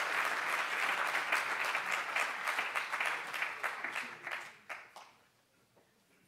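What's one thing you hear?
An audience applauds loudly in a large hall, then the applause fades.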